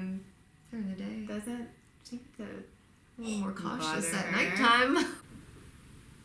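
Two young women talk excitedly close by.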